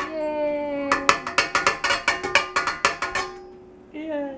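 Food taps and rattles into a metal bowl.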